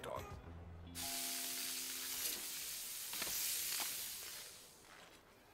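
Meat sizzles loudly on a hot grill.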